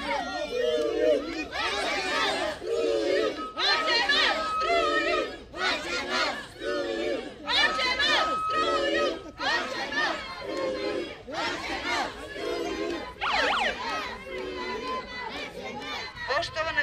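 A crowd chants loudly in rhythm outdoors.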